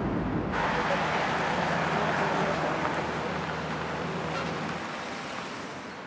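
A car drives up slowly on a wet road.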